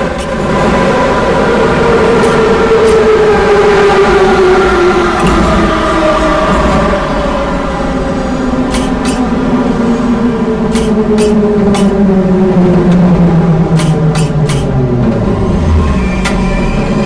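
An electric train motor whines and falls steadily in pitch as the train slows down.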